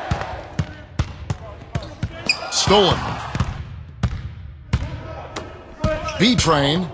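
A basketball bounces on a hardwood court in quick, regular thuds.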